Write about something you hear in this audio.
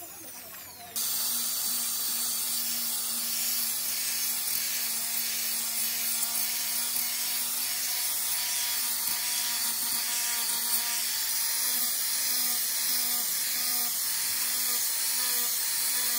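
An angle grinder with a sanding disc sands wood.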